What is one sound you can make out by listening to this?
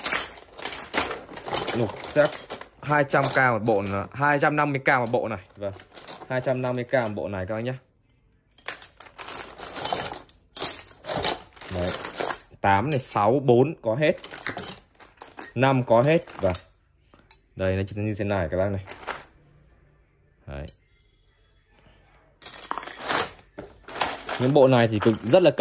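Metal wrenches clink and rattle against each other.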